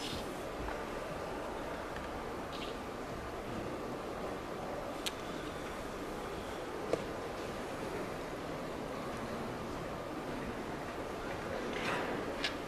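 A chess clock button is pressed with a click.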